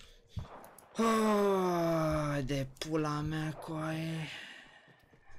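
A young man groans loudly in a long, falling voice.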